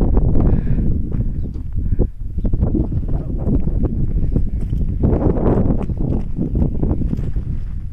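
Strong wind blows and rumbles against the microphone outdoors.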